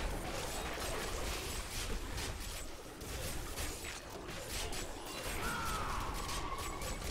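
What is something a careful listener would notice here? Magic blasts crackle and burst in quick succession.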